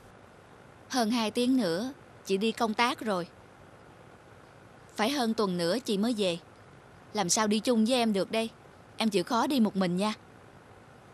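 A woman speaks close by in a gentle, soothing voice.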